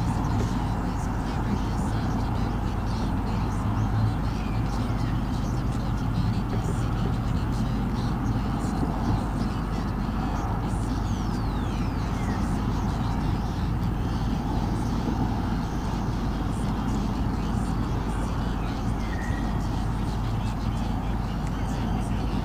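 Wind blows steadily outdoors and rustles through leaves.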